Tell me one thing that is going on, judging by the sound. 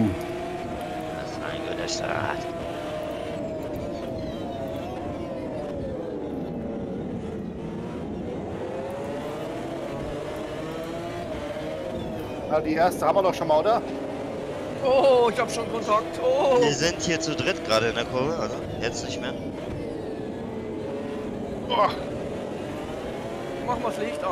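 A racing car engine roars, rising and falling in pitch as it revs through the gears.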